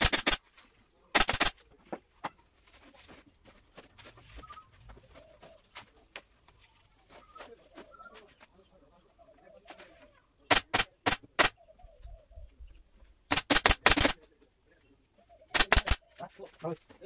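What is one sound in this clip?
A staple gun fires in quick bursts of sharp clacks.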